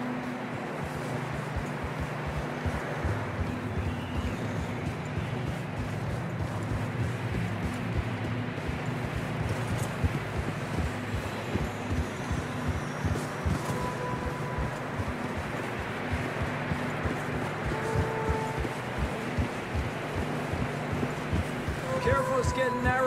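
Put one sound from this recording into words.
Wind howls and roars steadily outdoors.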